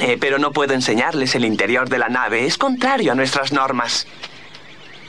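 A cartoon character speaks with animation in a high, funny voice.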